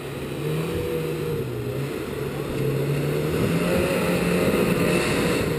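A four-wheel-drive truck engine revs under load as the truck climbs over rocks.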